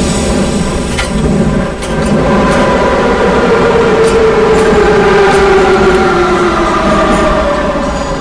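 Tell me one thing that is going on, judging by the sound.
Wheels click over rail joints.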